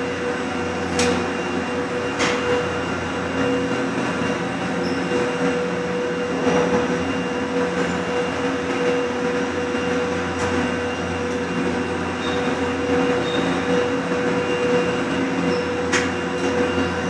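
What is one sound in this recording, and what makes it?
Chairlift and gondola hangers clatter and clank as they pass over the rollers.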